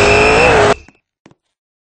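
A car engine roars loudly, then cuts off.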